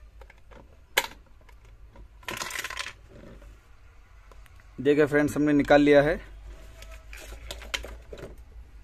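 Plastic parts click and snap apart.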